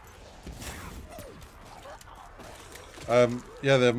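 Gunfire and explosions crackle from a game.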